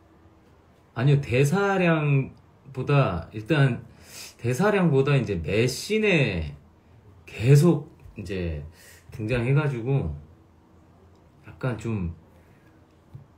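A young man speaks calmly and close to a microphone, in short phrases.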